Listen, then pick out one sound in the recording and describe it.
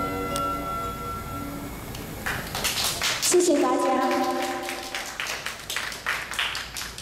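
A young girl sings into a microphone through loudspeakers.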